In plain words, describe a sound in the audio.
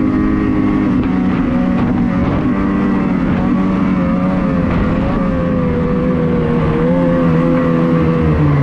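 A snowmobile engine roars steadily close by, its pitch wavering slightly.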